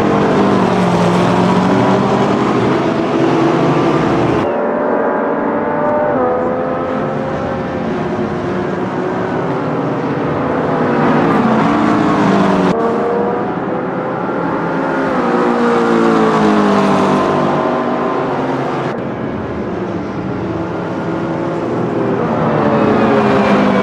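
Racing car engines roar and whine, rising and falling in pitch as they shift gears.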